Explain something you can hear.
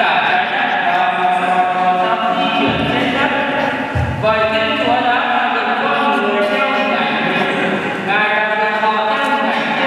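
A young man reads aloud through a microphone in a large echoing hall.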